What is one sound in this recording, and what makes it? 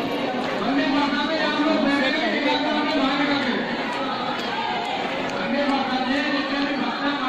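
A woman sings close by.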